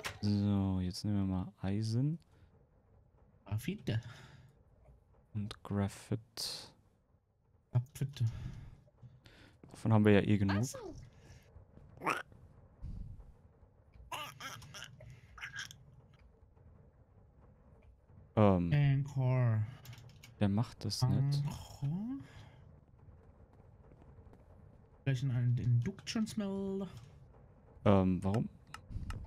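A young man talks calmly and casually into a close microphone, in bursts with pauses.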